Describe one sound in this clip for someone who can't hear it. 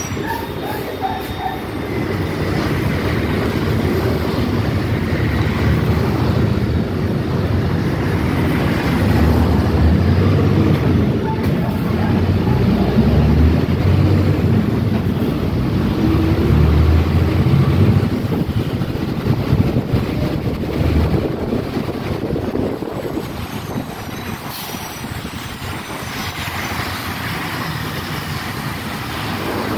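A bus engine rumbles from inside as it pulls away and picks up speed.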